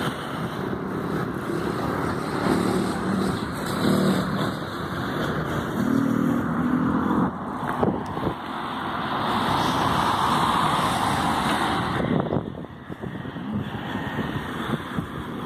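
Wind rushes loudly past outdoors.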